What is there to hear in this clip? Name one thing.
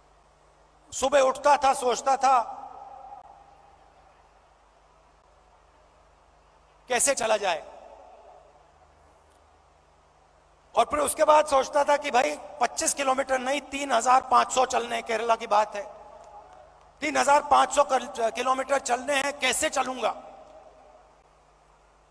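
A man's amplified voice echoes through a large open space.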